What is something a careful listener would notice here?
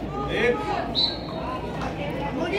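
A referee's whistle blows a short steady blast.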